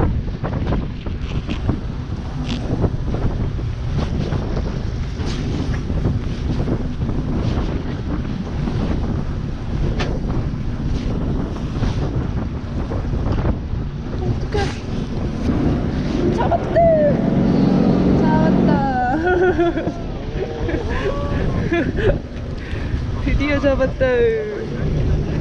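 Wind rumbles across the microphone outdoors on the water.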